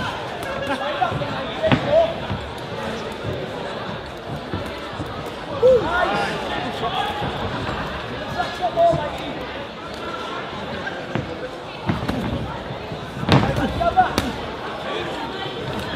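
A crowd shouts and cheers.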